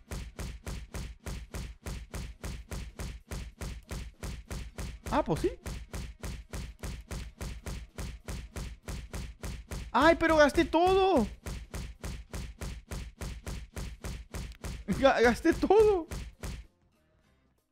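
Quick punching sound effects repeat in a fast, steady rhythm.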